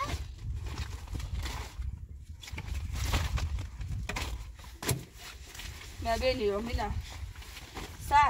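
A plastic bag rustles and crinkles as a woman shakes it.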